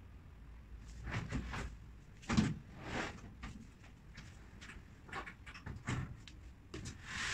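A woman shifts a large wooden cabinet, its panels knocking and thudding on the floor.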